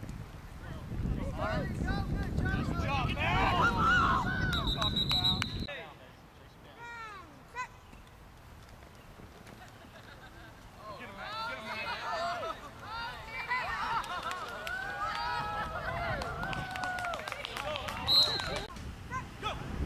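Children and adults shout and cheer outdoors.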